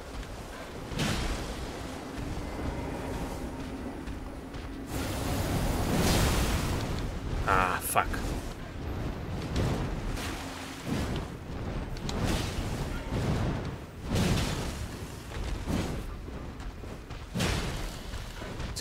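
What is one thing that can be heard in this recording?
Heavy weapon blows thud and clash in a fight.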